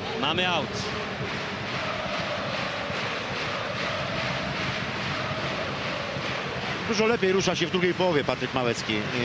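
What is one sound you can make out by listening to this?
A large stadium crowd chants and roars steadily.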